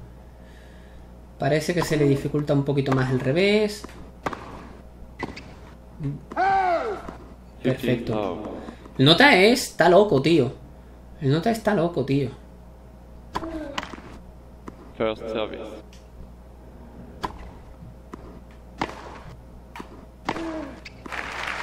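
A tennis ball is struck with a racket, with sharp pops back and forth.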